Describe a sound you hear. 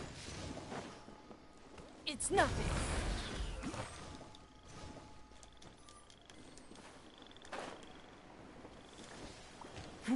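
A character glides through the air with a rushing whoosh.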